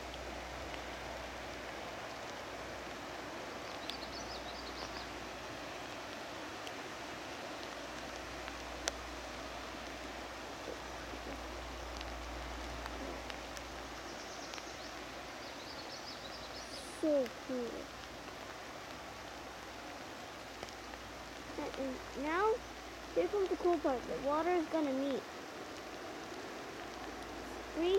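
Wind rustles through the leaves of trees outdoors.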